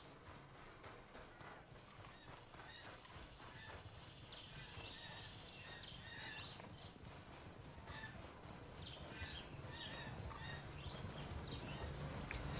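Footsteps swish through grass at a steady walking pace.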